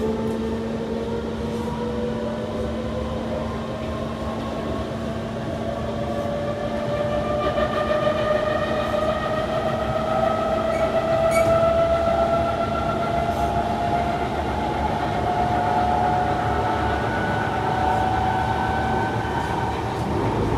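A train's motors whine, rising steadily in pitch as it speeds up.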